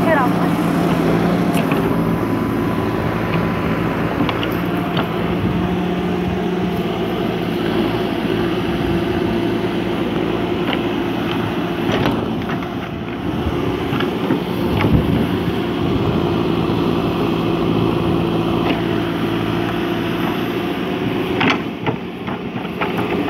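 A digger bucket scrapes and thuds into soil and gravel.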